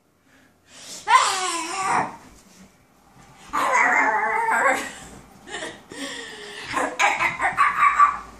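A young woman squeals and laughs.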